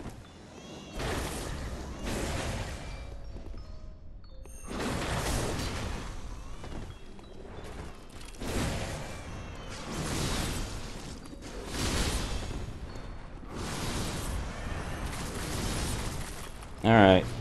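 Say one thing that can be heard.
Heavy blows thud on a stone floor.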